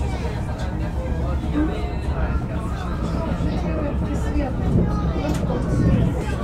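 A train rumbles steadily along the tracks from inside a carriage.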